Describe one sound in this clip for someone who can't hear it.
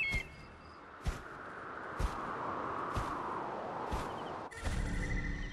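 Wind rushes past a gliding eagle.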